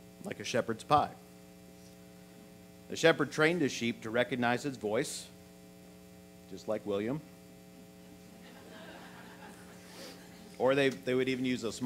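An older man speaks steadily through a microphone, pausing between phrases.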